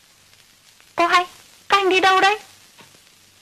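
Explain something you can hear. A young woman calls out in a high voice.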